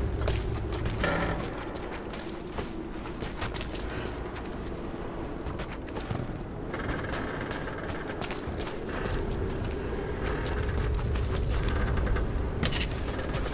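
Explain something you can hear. Footsteps crunch on stone and snow.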